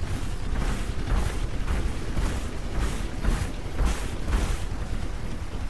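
Heavy metal footsteps clank and thud in a steady rhythm.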